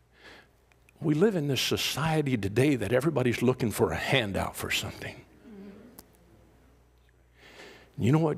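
A middle-aged man speaks with animation in an echoing hall.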